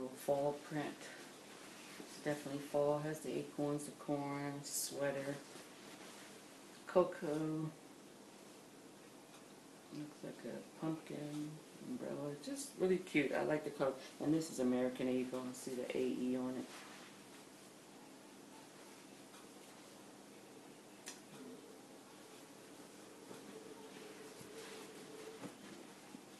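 Fabric rustles as a large scarf is shaken out.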